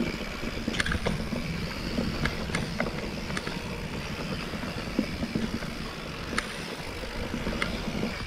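Bicycle tyres roll and crunch over a dry dirt trail.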